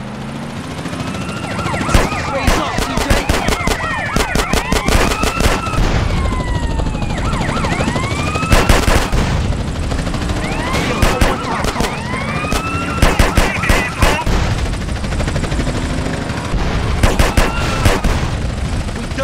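Police sirens wail, rising and falling.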